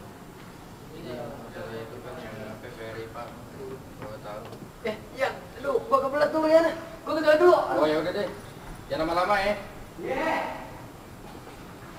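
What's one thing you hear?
Two teenage boys talk with each other up close.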